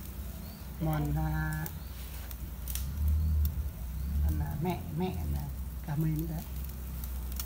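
A middle-aged woman speaks nearby in short phrases.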